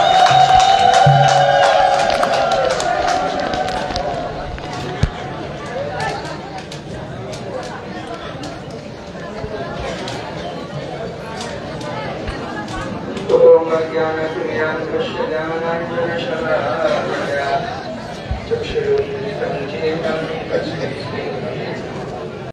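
A man chants loudly through a loudspeaker.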